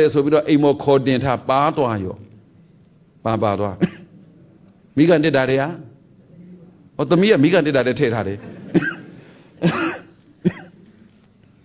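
A middle-aged man speaks calmly and slowly, close to a microphone.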